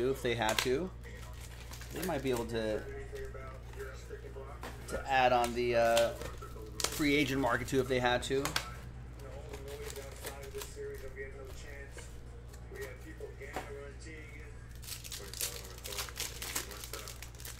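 Card packs rustle and crinkle as they are torn open.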